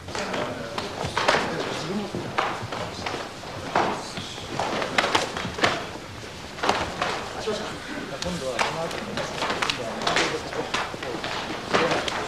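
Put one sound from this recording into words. Punches and kicks thud against bodies.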